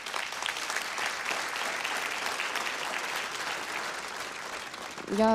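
Hands clap in steady, lively applause.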